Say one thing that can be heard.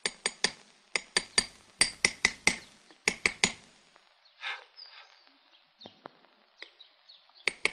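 A hammer taps a chisel against stone in quick, sharp, ringing blows.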